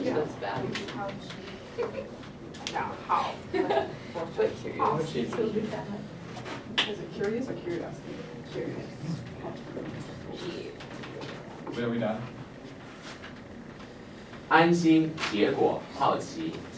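Several young men and women talk and chatter nearby.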